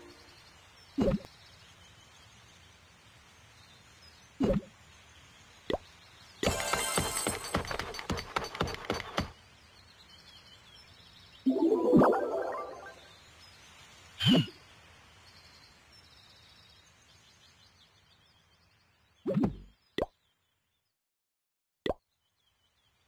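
Short game menu clicks sound now and then.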